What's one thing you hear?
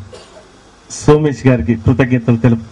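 An elderly man speaks calmly through a microphone and loudspeaker.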